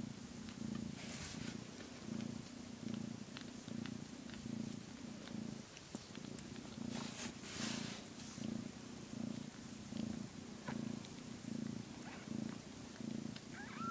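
A hand rubs through a cat's fur with soft rustling.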